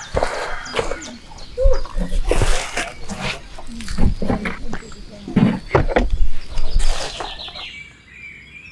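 Dry bark crunches and crackles as hands crumble it.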